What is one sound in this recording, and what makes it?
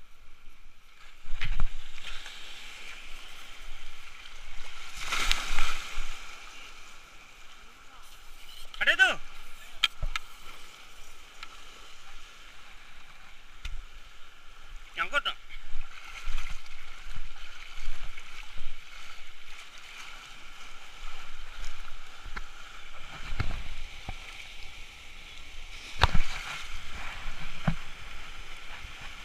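Choppy water laps and splashes close by.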